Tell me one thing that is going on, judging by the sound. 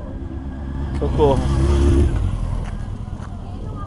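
A motorcycle engine rumbles nearby.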